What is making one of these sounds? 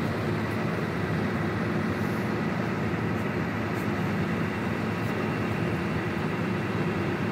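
A ferry's engine rumbles steadily.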